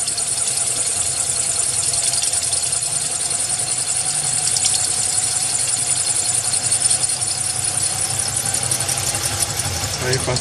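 An electric drill whirs steadily as it bores into glass.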